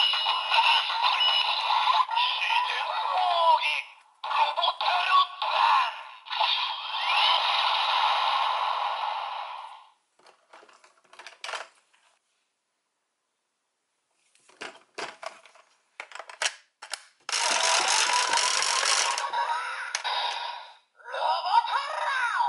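A toy sword plays loud electronic sound effects.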